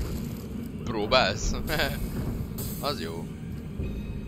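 A man speaks through a headset microphone with animation.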